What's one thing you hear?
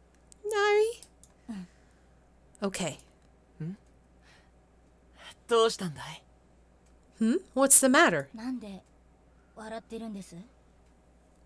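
A young woman speaks expressively into a close microphone, in short bursts.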